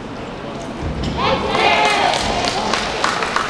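An audience cheers and shouts loudly in an echoing hall.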